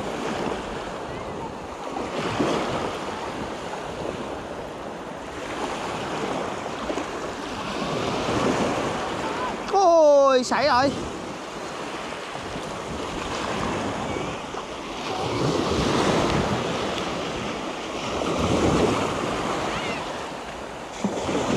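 Waves wash and break on the shore in swelling surges.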